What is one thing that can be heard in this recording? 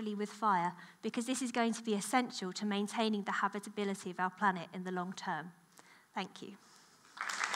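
A young woman speaks calmly through a microphone in a large hall.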